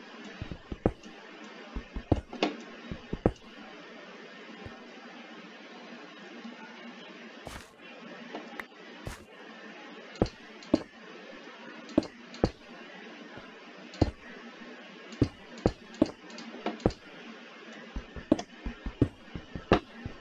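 A pickaxe strikes stone blocks with sharp knocks, again and again.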